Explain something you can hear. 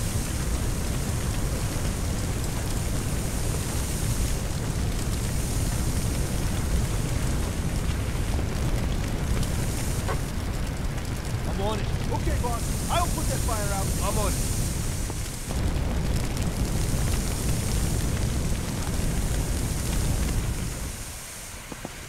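A fire hose sprays a strong, steady jet of water.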